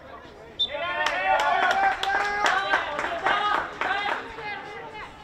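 Hockey sticks clack sharply against a ball.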